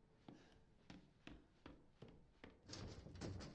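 Footsteps thud slowly on a creaky wooden floor.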